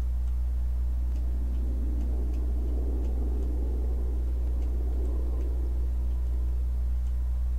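A man speaks quietly into a microphone.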